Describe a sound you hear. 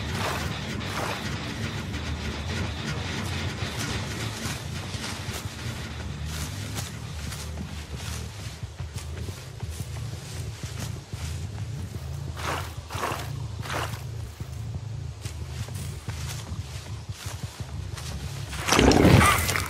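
Heavy footsteps tread steadily over rustling ground.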